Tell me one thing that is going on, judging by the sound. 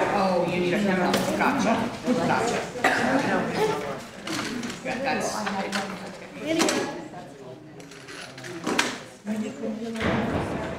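A congregation chats quietly in a large echoing hall.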